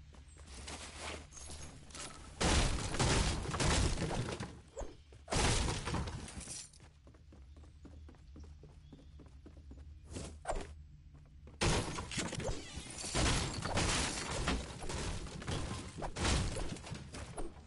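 Footsteps thud quickly across wooden floors and stairs.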